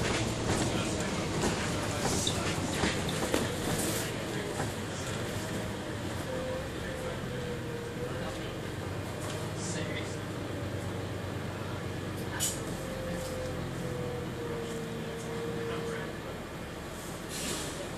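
A bus engine hums and whines steadily.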